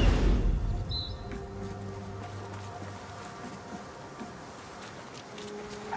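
Footsteps crunch on dirt and wood.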